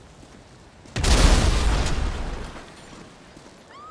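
A car explodes with a loud boom that rumbles away.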